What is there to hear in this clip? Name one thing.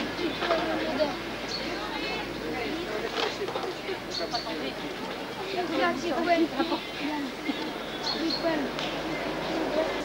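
Several people chatter nearby in a busy crowd.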